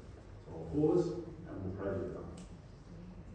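A man speaks calmly over loudspeakers in a large echoing hall.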